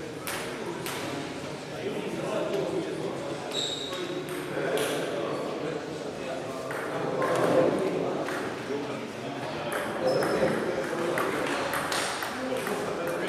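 Table tennis balls click on tables and paddles in a large echoing hall.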